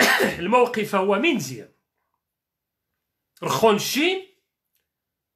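A man speaks calmly and close to a microphone, in short phrases.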